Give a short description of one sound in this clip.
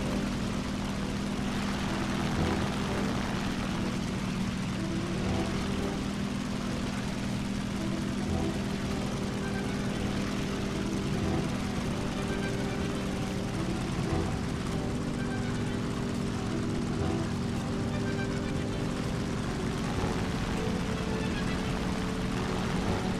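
A propeller plane's engine drones steadily and loudly.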